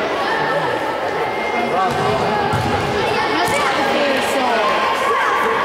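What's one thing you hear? Young boys shout to each other across a large echoing hall.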